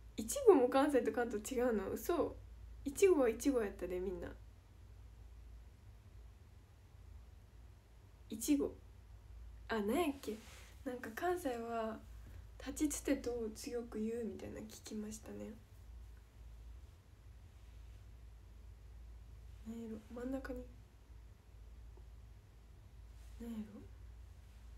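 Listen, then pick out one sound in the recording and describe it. A young woman talks casually and close by, as if into a phone microphone.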